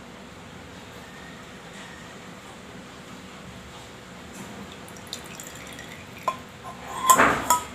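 Liquid pours quietly into a glass jar.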